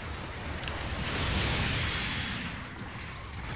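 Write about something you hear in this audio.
An explosion booms with a rushing roar.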